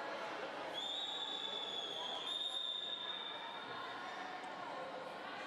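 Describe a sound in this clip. Children and spectators chatter in a large echoing hall.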